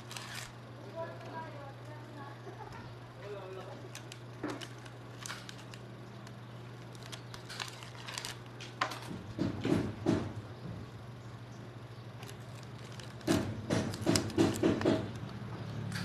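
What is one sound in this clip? A metal tool clicks and scrapes against wire ends.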